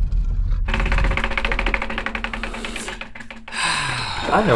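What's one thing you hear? A prize wheel spins with rapid ticking clicks that slow down.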